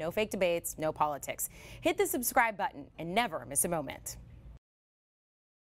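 A young woman speaks clearly into a microphone, in a newsreader's tone.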